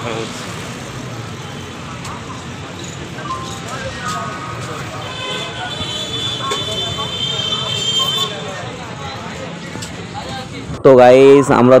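Men and women chatter in a busy street crowd.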